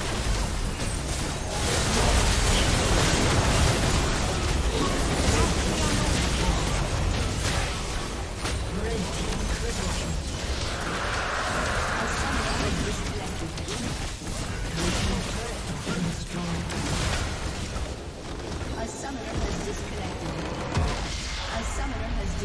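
Game spell effects and explosions crackle and boom.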